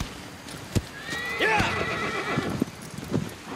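A horse whinnies briefly.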